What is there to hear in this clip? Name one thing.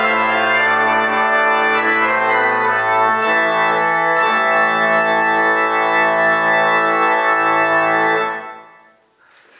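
A pipe organ plays full, sustained chords.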